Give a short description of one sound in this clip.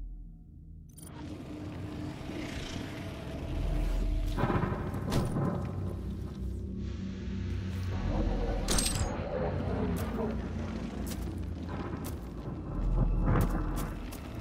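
Heavy footsteps crunch steadily over rock.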